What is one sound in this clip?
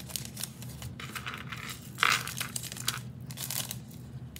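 A metal chain bracelet jingles as it is picked up.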